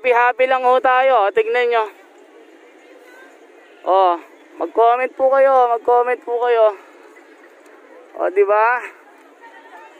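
A young child sings loudly close by.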